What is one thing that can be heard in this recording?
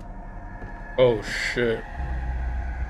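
A man speaks a few words briefly into a close microphone.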